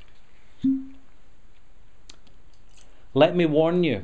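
Whisky pours from a bottle into a glass.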